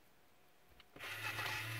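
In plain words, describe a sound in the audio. A toy truck plays a loud electronic sound effect.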